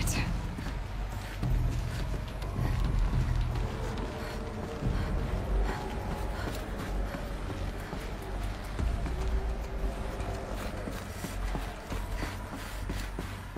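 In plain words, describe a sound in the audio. Footsteps patter quickly over a hard floor.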